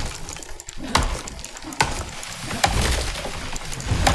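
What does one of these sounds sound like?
A tree creaks and crashes to the ground.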